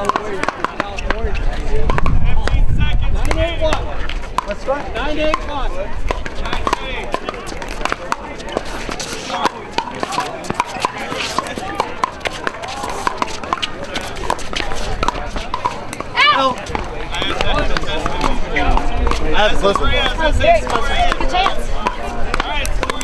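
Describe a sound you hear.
Men and women chatter nearby and at a distance outdoors.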